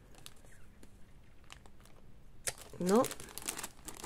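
Paper rustles and crinkles as a bundle of paper pieces is handled.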